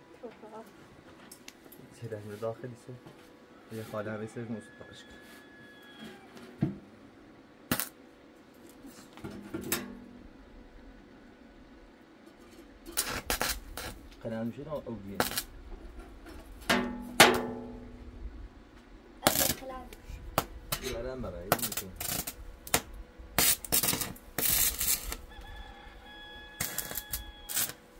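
Metal taps and scrapes against a metal trough.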